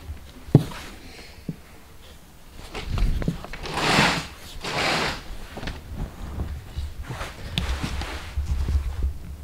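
A curtain rustles as it is pushed aside.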